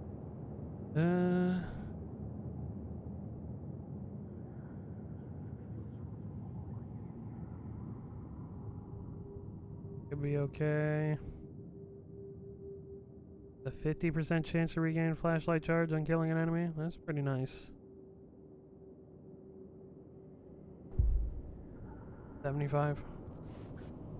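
Soft chiming tones sound in quick bursts.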